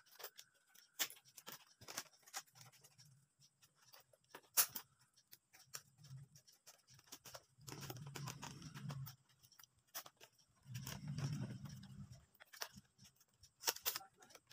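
Scissors snip through thin bamboo strips.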